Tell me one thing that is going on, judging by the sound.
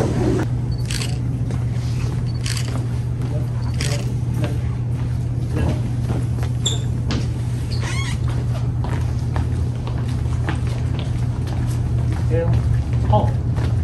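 Footsteps shuffle slowly across a hard floor.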